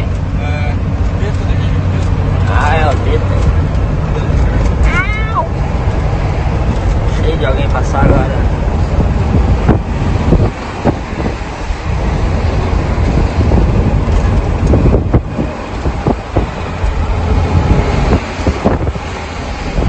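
A truck engine rumbles steadily from inside the cab while driving.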